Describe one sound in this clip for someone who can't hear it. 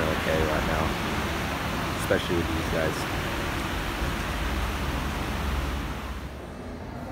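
Street traffic hums in the distance outdoors.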